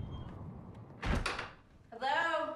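A front door shuts with a thud.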